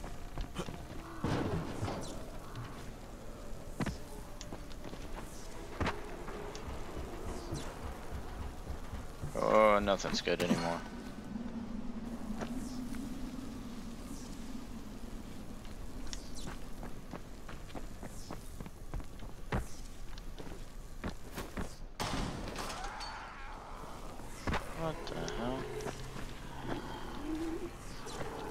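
Quick footsteps thud and scrape as a runner dashes and climbs.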